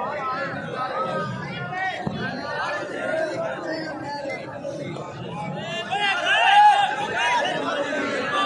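Men in an outdoor crowd shout and call out.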